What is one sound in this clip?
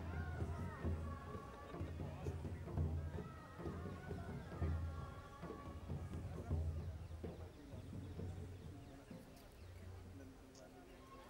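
Drums beat loudly in a lively rhythm outdoors.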